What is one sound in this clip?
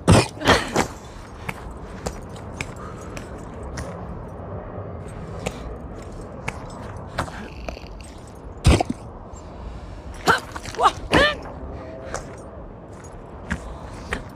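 Hands knock and grip against a wall with short thuds.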